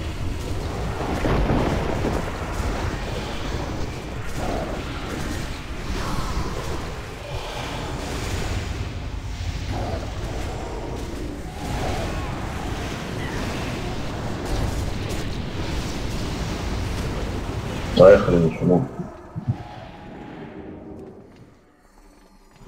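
Magic spells crackle and burst in a busy fight.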